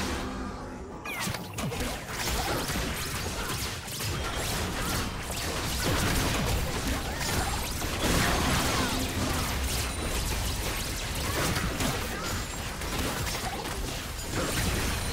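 Magic blasts and hits crackle and thud in a fast, busy fight.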